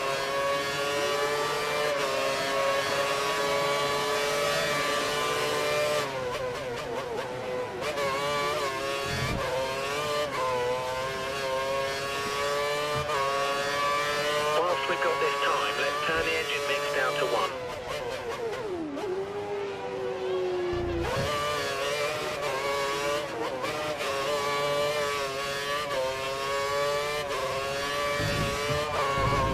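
A racing car engine screams at high revs, its pitch rising and dropping again and again.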